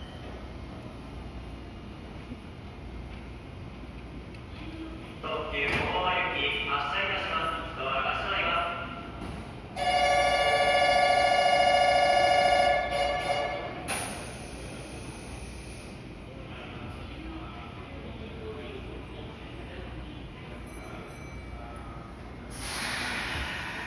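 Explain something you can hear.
An electric train rolls slowly away, rumbling softly.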